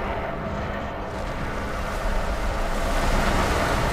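A massive creature crashes down with a deep booming impact as rock and debris burst apart.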